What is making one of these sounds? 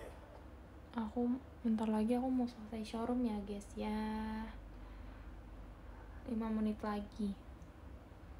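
A young woman speaks softly and close by.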